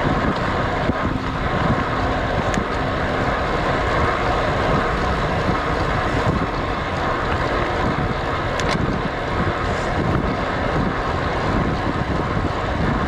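Wind rushes loudly past a cyclist riding a road bike downhill.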